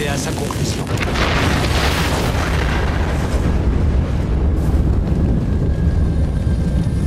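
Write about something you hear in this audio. Explosions boom with a deep, heavy rumble.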